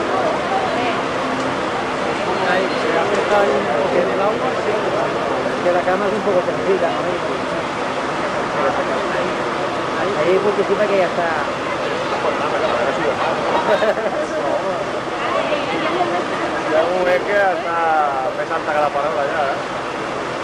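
Several men talk excitedly nearby outdoors.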